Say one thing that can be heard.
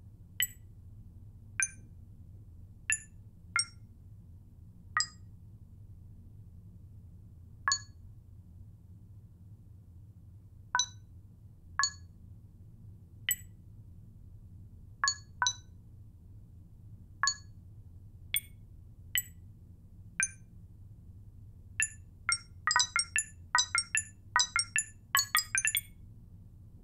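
Short electronic beeps sound as keypad buttons are pressed, quickening toward the end.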